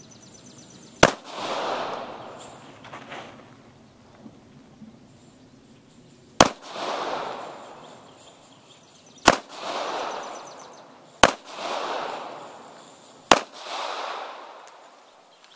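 A handgun fires single loud shots that echo outdoors.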